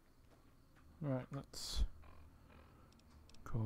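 A device menu clicks and beeps.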